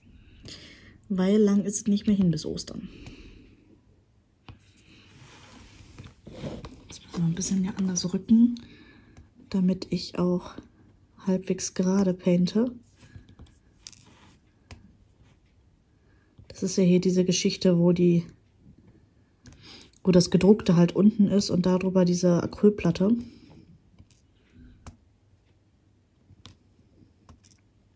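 A pen tool taps and picks up small plastic beads with soft clicks.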